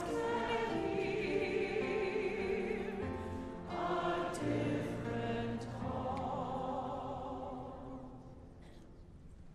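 A large crowd sings together in an echoing hall.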